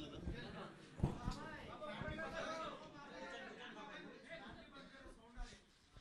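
A man talks quietly nearby.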